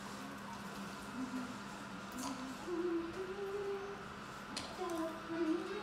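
A small monkey slurps a drink through a straw.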